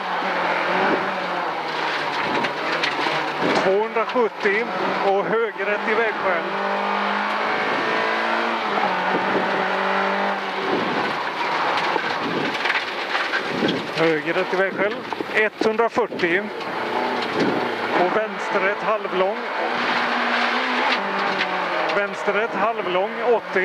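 Gravel and stones rattle against the underside of the car.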